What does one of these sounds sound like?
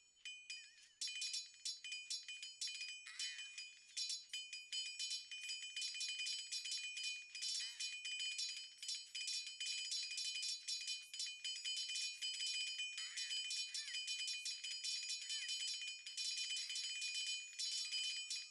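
Many swords and weapons clash rapidly in a battle.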